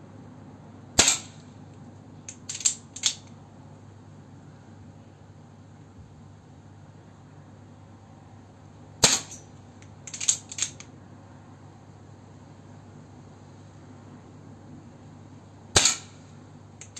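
An air pistol fires with a sharp crack.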